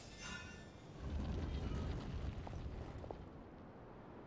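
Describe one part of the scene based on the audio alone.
A heavy stone door rumbles as it slides open.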